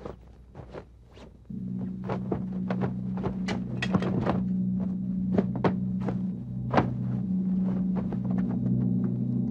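Fabric rustles as a young man shifts and moves about.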